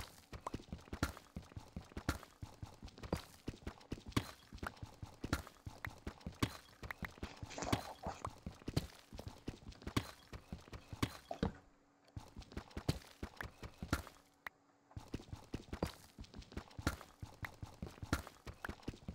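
A pickaxe chips rapidly at stone blocks.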